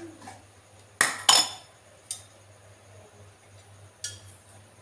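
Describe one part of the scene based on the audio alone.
Metal utensils clink and knock.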